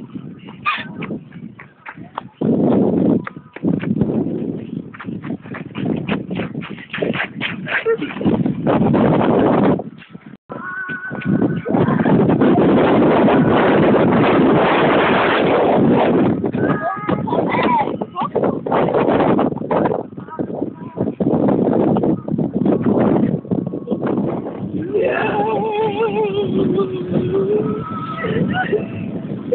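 Young girls talk and laugh excitedly close by.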